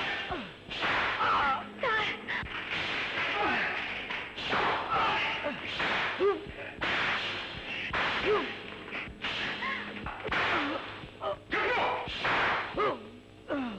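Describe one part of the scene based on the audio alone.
A man cries out loudly in pain.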